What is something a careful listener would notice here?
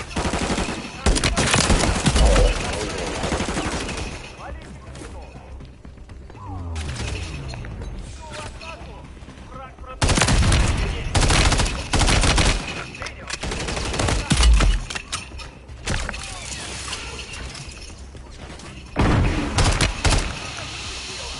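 Gunfire bursts rapidly in loud volleys.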